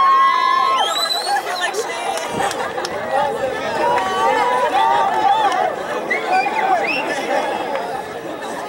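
Young players shout to each other across an open field.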